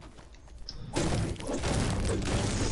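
A pickaxe strikes a tree trunk with heavy thuds.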